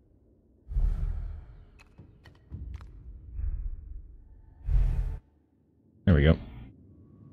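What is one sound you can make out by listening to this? Heavy footfalls thud as someone leaps and lands.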